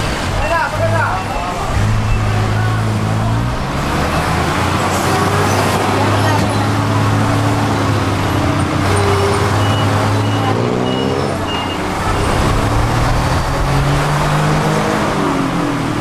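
An engine rumbles steadily close by while riding along a street.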